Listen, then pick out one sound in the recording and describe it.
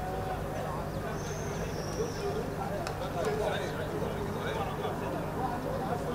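A man calls out to others across an open field.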